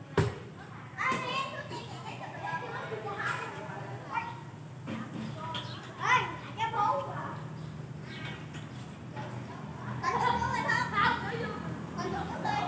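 Children shout and call out to each other at a distance outdoors.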